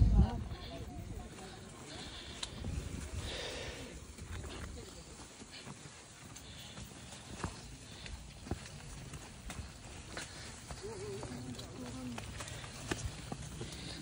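Tall grass rustles and swishes against passing bodies.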